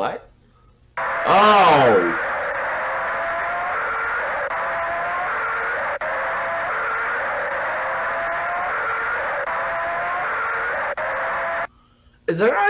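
A short electronic game melody repeats over and over.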